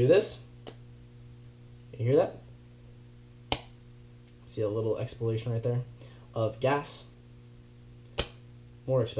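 Small metal parts click sharply together.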